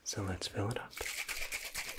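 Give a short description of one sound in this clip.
A young man whispers softly close to a microphone.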